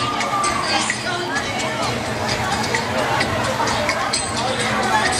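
Water splashes as swimmers kick and stroke through a pool.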